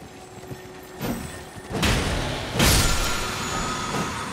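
A blade swings and strikes with a heavy hit.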